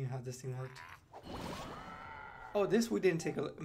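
A magic spell bursts with a whooshing blast.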